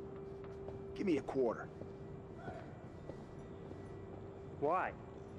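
A second young man answers briefly.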